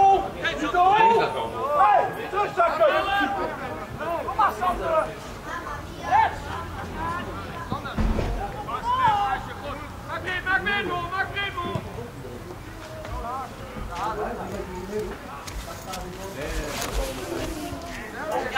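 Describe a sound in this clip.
Young women shout to each other across an open pitch.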